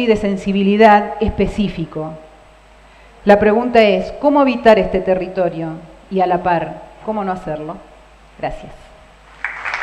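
A woman speaks calmly into a headset microphone.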